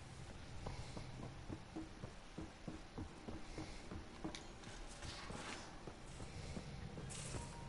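Footsteps run quickly across a hard metal floor.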